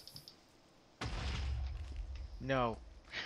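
A creeper explodes with a deep, rumbling boom.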